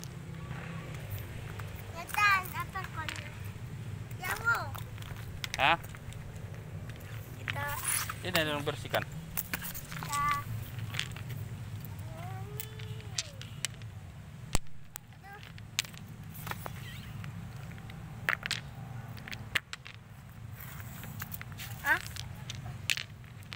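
A young boy speaks briefly.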